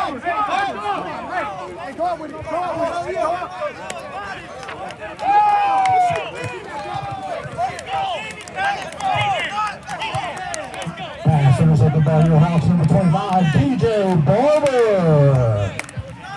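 Young men shout excitedly nearby.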